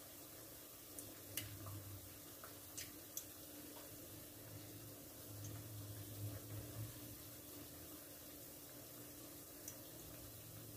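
Metal tongs click against a pan.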